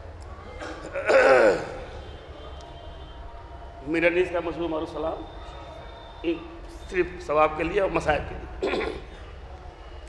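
A middle-aged man speaks with emotion through a microphone, in bursts with pauses.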